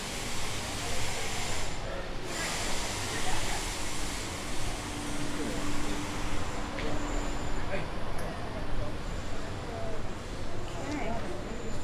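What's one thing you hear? Men and women chat quietly at nearby tables outdoors.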